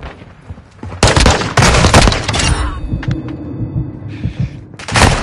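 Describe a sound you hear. Gunshots fire in rapid loud bursts.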